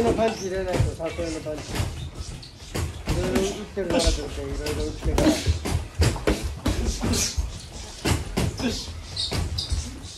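Boxing gloves thump against each other in quick punches.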